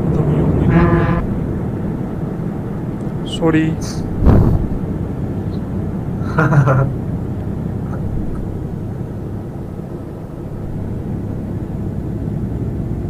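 A truck engine hums steadily while driving along a road.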